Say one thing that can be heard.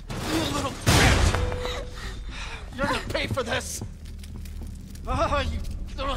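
An elderly man shouts angrily.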